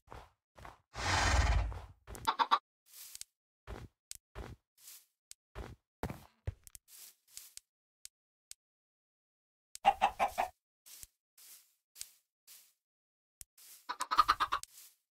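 Footsteps tap softly on hard ground.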